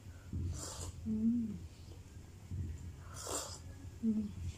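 A young woman slurps a drink loudly from a cup, close by.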